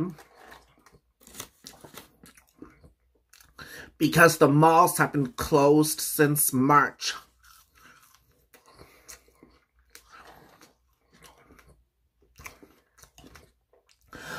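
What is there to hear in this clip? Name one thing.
Paper wrappers crinkle and rustle.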